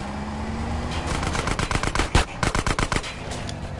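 A train rumbles and clatters along the tracks.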